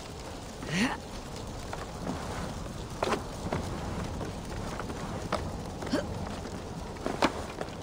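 Hands and boots knock against wooden logs while climbing.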